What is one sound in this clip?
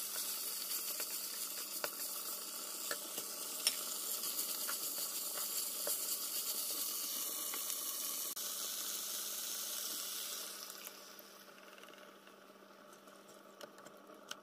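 A wooden spatula scrapes and clacks against a frying pan.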